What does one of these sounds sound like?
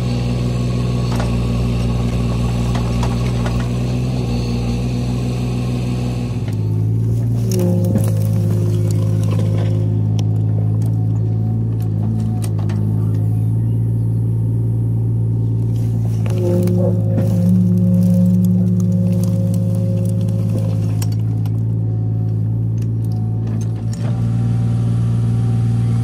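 A small digger's diesel engine hums steadily close by.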